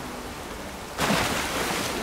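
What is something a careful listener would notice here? Water splashes loudly as someone wades in.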